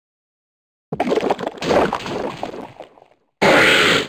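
A game blast bursts with a splattering thud.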